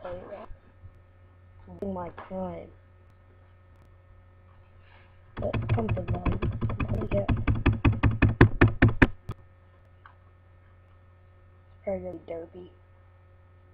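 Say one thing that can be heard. A young boy talks in short bursts close to a computer microphone.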